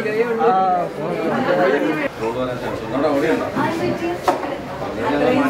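A man talks calmly with a woman nearby.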